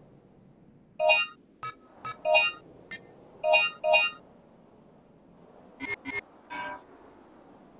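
Electronic menu beeps chime.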